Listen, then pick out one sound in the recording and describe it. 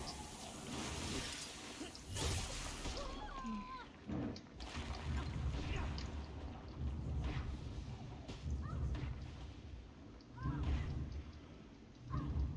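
Video game combat effects clash, whoosh and crackle.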